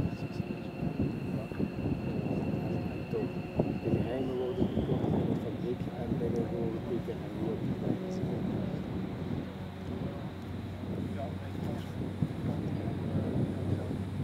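A single-engine propeller aerobatic plane rolls along a runway with its engine throttled back.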